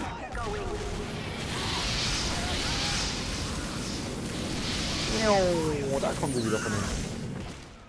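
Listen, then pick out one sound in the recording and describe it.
A flamethrower roars with a steady rushing hiss.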